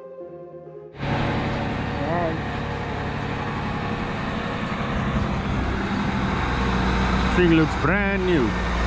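A tractor engine rumbles steadily and grows louder as the tractor approaches.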